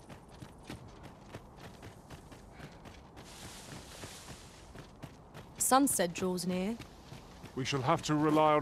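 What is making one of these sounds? Footsteps crunch on dry dirt and gravel.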